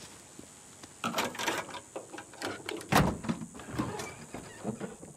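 A car hood creaks and clanks open.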